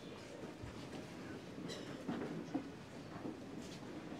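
Footsteps shuffle softly across a hard floor.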